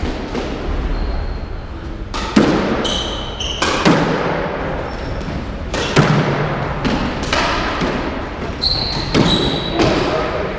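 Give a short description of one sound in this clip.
Court shoes squeak on a wooden floor.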